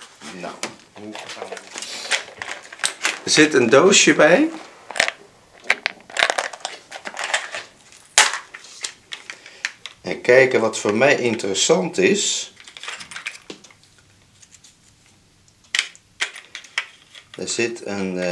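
Plastic rustles and clicks in a man's hands.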